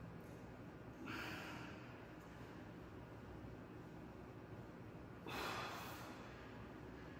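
A man exhales hard with effort.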